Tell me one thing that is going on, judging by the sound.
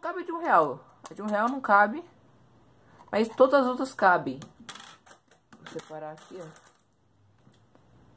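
Metal coins clink together.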